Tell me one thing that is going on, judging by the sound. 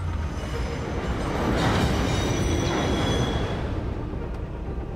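A train rushes past close by.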